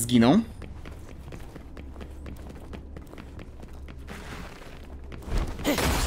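Footsteps tread softly on uneven ground.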